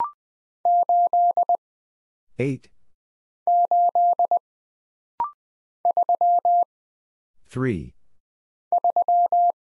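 Morse code beeps out in quick bursts of short and long tones.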